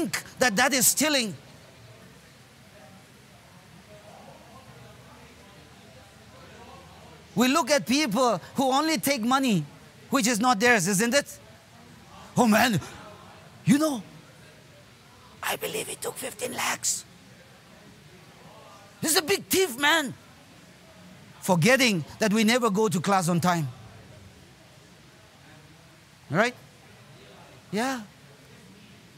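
A man speaks through a microphone in bursts with pauses, echoing in a large hall.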